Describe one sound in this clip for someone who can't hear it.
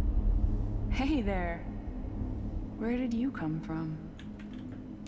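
A young man speaks softly and calmly.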